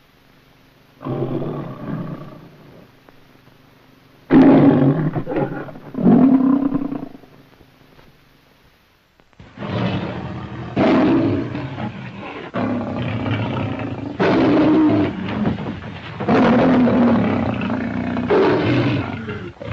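A lion roars loudly, several times.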